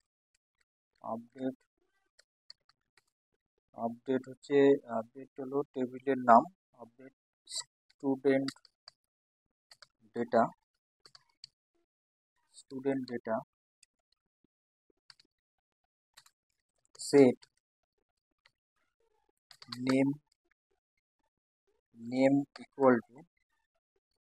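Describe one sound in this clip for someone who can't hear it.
A man speaks calmly and slowly, close to a microphone, in short bursts with pauses.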